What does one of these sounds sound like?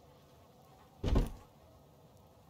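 A heavy box lid clanks open.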